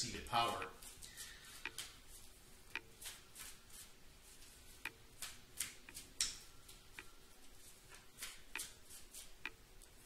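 Cards shuffle and snap in a man's hands.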